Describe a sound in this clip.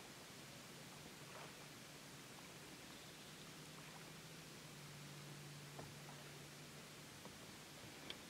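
Water laps softly against the hull of a gliding boat.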